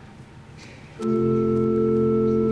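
A piano plays a sustained chord.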